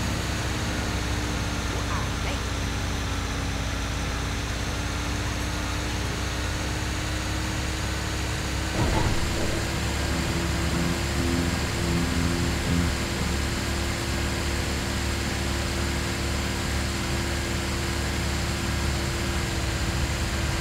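A truck engine hums steadily as it drives.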